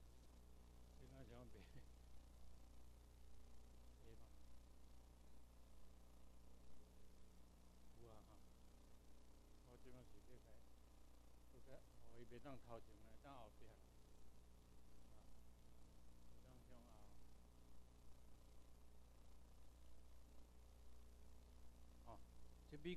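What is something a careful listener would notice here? An elderly man lectures calmly, heard from across the room.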